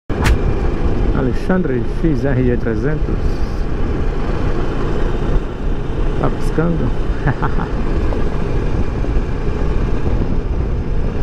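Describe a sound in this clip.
Wind roars loudly against a helmet as a motorcycle rides fast.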